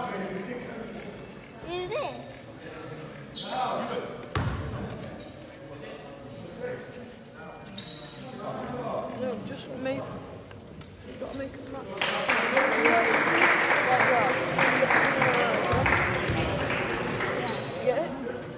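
Young men talk and call out across the court.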